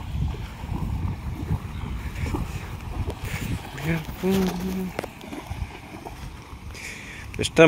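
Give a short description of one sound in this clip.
A man wades through shallow water, splashing with each step.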